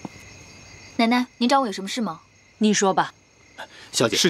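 A young woman speaks with concern.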